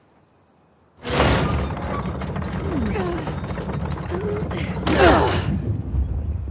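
A heavy stone mechanism grinds as it is turned by a wooden pole.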